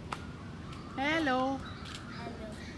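A young girl calls out nearby.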